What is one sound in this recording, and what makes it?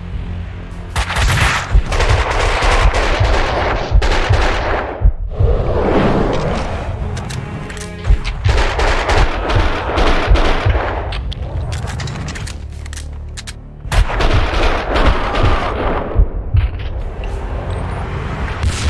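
Pistol shots fire in rapid bursts, echoing in a large hall.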